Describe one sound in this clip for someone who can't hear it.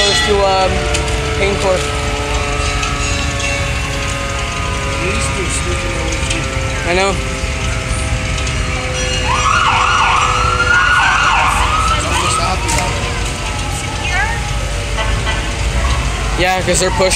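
A fire engine's siren wails.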